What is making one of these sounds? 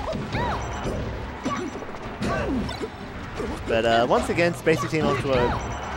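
Video game fighting sound effects chime, whoosh and sing out in quick bursts.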